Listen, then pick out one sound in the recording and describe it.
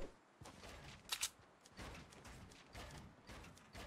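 Building pieces snap into place with quick clicks.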